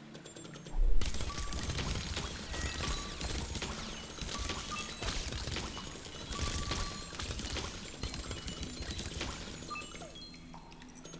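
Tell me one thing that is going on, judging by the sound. Rapid electronic blasts fire and burst in a video game.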